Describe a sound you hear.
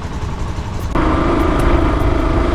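A motorcycle engine hums steadily while riding along a street.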